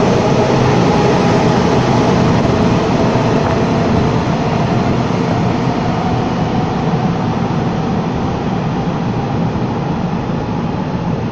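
An electric train rumbles away into a tunnel and fades.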